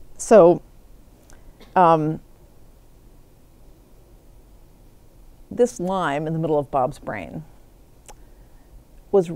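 A middle-aged woman speaks calmly in short bursts, close by, with pauses.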